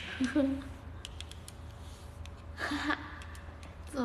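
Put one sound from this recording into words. A young woman laughs brightly.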